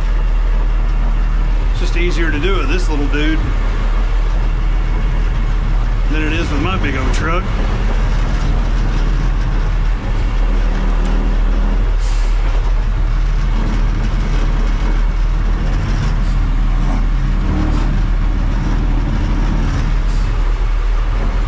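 A truck's diesel engine idles with a steady low rumble.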